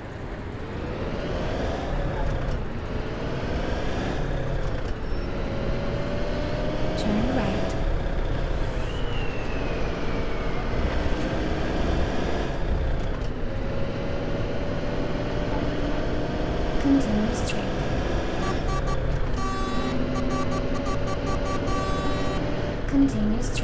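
Bus tyres rumble over cobblestones.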